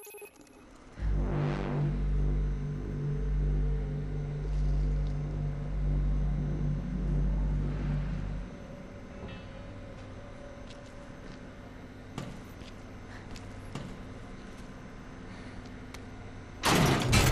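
A low machine hum drones steadily.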